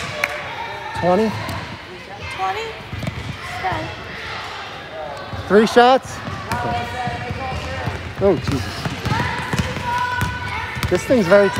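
Young girls shout and call out to each other in a large echoing gym.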